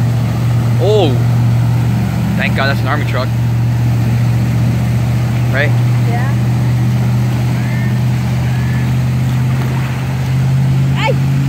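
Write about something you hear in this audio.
Water splashes and sloshes as vehicles drive through deep floodwater.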